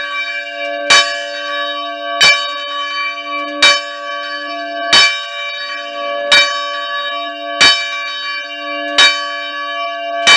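A large bell swings and rings loudly, struck at a steady pace, each stroke ringing on between strikes.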